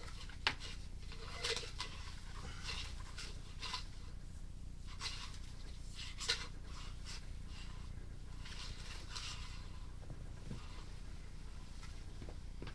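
A probe knocks and scrapes against the inside of a pipe.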